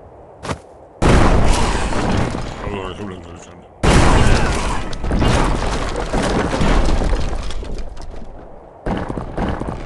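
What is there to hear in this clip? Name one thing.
A stone and timber tower crashes down amid explosions.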